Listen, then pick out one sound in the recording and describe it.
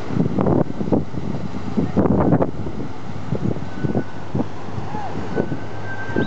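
A car splashes through flowing water.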